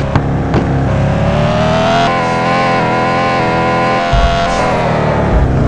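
A car crashes and tumbles with metal bangs.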